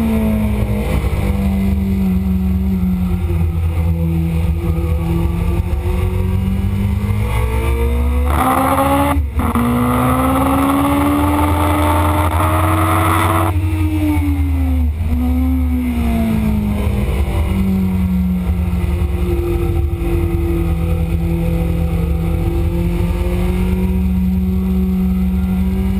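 A motorcycle engine roars loudly, revving up and down through the gears.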